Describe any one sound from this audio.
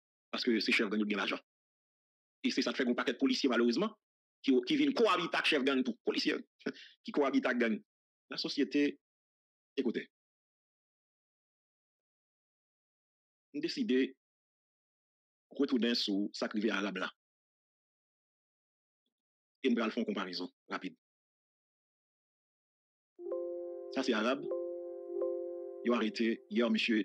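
A man speaks calmly and close to a microphone, in short bursts with long pauses.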